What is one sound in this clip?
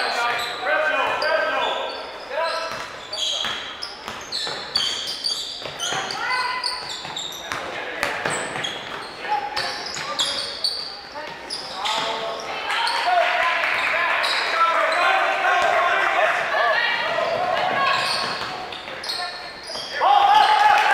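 Sneakers squeak sharply on a gym floor, echoing in a large hall.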